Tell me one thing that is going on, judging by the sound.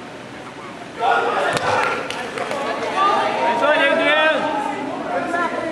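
Sneakers squeak on a wooden court in a large echoing gym.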